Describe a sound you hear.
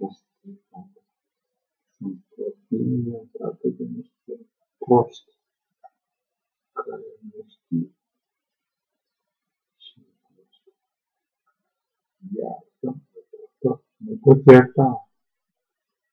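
A middle-aged man talks with animation close to a microphone, in short bursts with pauses.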